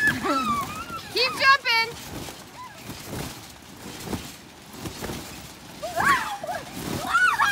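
A trampoline thumps and creaks as children bounce on it.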